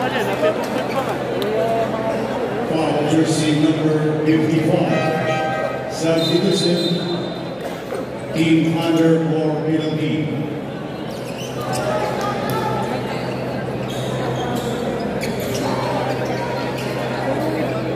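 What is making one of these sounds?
A large crowd cheers and chatters in a big echoing hall.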